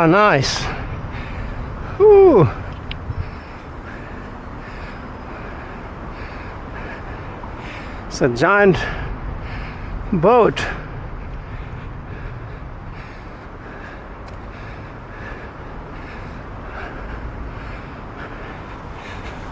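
Water laps gently against a harbour wall outdoors.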